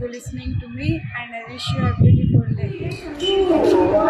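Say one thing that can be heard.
A young woman speaks warmly and close to the microphone.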